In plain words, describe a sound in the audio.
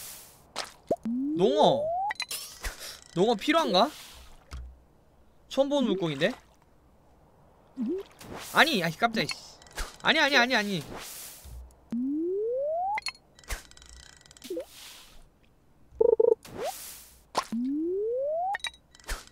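A rising electronic tone swells as a game character winds up a fishing cast.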